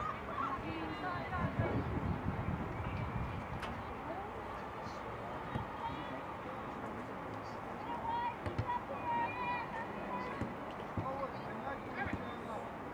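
Young women shout to each other across an open field, some way off.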